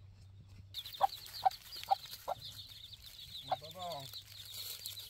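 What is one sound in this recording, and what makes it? A hen clucks nearby.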